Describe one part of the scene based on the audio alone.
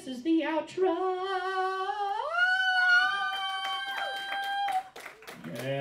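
A man sings in long, drawn-out wails into a microphone.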